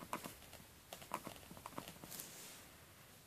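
A small plastic cap clicks and taps against a pen.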